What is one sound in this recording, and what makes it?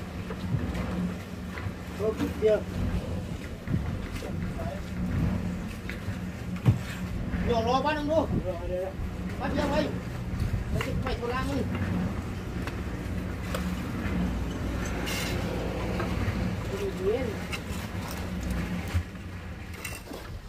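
A trowel scrapes and taps on concrete blocks.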